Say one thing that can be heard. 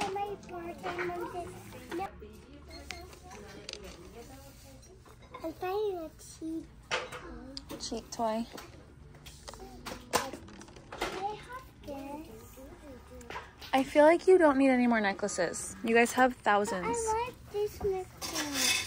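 A young girl talks and sings with animation close by.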